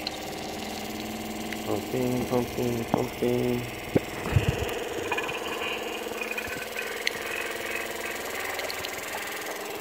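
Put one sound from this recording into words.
Liquid gurgles as it pours from a plastic bottle.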